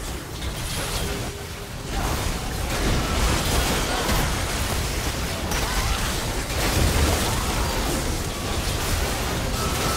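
Magic spells burst and clash in a busy video game battle.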